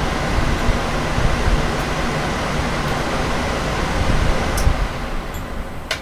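Several electric fans whir loudly with a steady rushing hum.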